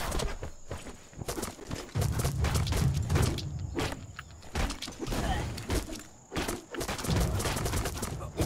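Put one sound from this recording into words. A game character swings a weapon with sharp whooshing slashes.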